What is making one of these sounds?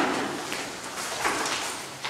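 Brooms sweep across a floor.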